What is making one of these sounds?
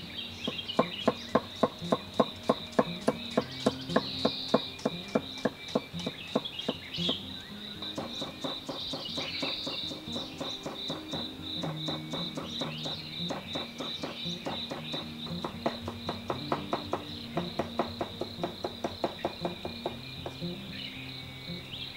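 A knife chops quickly and steadily on a wooden block.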